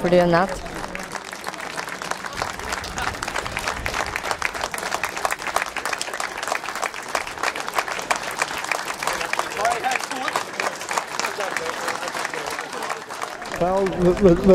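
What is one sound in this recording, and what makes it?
A crowd applauds and claps steadily.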